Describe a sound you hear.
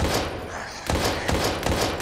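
A gun fires a shot at close range.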